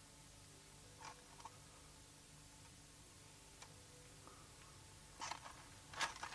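A small wooden box lid taps and scrapes as it is handled.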